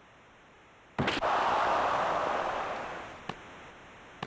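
A crowd cheers loudly, then fades.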